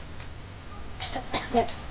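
A woman speaks briefly nearby outdoors.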